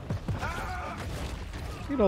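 Wooden crates smash and splinter.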